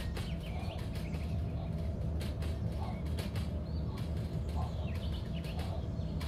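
A freight train's wagons rumble along the rails.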